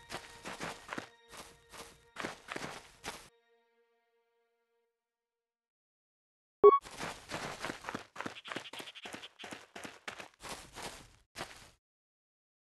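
Footsteps thud on stone at a walking pace.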